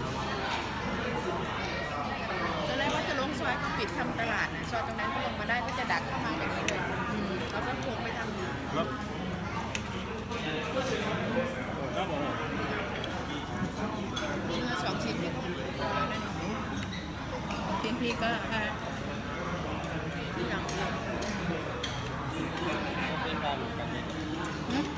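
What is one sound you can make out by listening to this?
A knife and fork scrape and clink on a ceramic plate.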